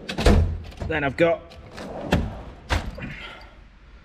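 A metal drawer slides open.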